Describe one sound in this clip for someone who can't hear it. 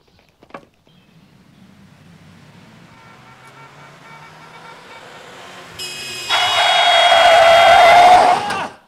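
A car engine approaches and grows louder.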